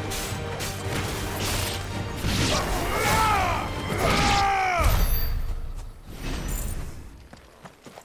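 Fiery blasts explode and crackle.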